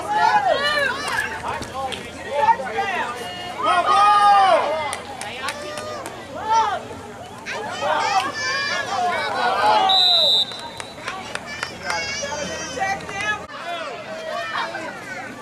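Young players shout across an open field.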